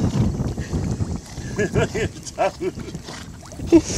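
A dog swims with soft sloshing near a dock.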